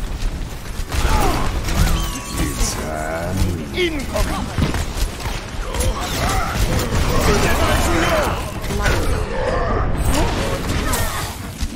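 Blasts boom and crackle.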